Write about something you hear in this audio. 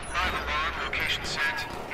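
An alarm sounds.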